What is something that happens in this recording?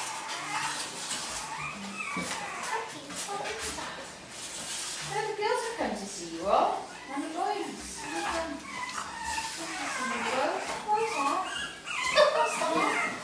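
A young girl talks to dogs nearby.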